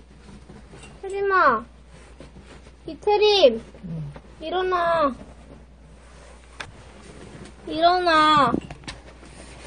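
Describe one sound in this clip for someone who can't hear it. A small dog whines in high, sliding cries.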